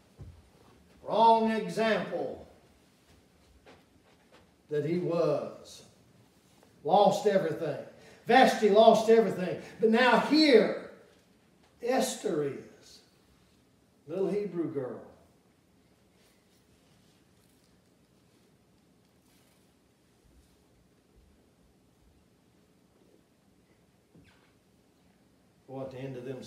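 A man speaks slowly and with emphasis into a microphone in an echoing hall, pausing often.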